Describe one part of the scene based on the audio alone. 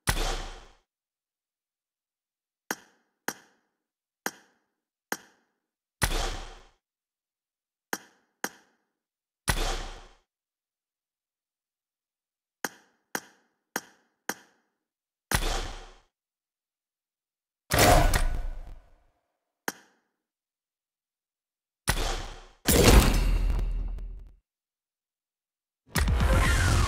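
Short game menu clicks and chimes sound in quick bursts.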